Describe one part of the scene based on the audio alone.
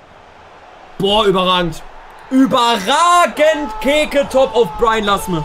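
A young man shouts and cheers excitedly into a microphone.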